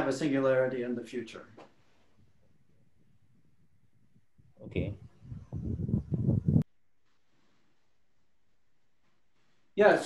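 A man speaks calmly and close by, in short bursts with pauses.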